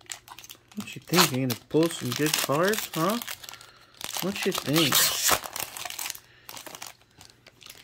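A foil wrapper crinkles loudly.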